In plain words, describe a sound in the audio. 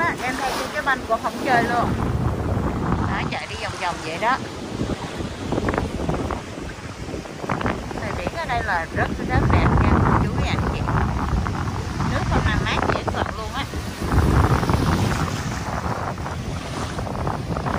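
Waves wash and break on a shore.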